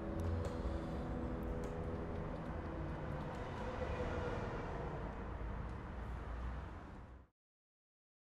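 A young woman sings softly into a microphone.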